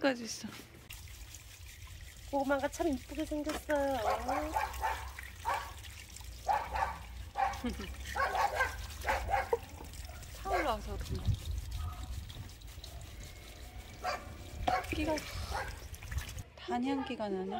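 Water from a hose splashes onto stone.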